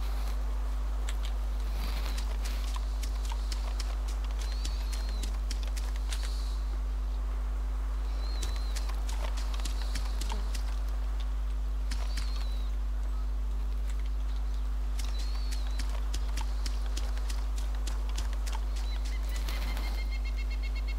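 Footsteps rustle softly through tall grass.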